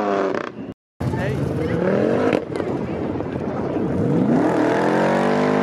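A sports car engine revs and rumbles as it pulls away.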